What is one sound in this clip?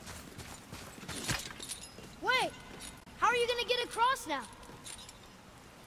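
A chain rattles as a man climbs it.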